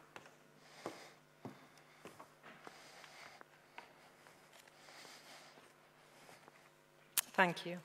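Footsteps tap across a wooden stage.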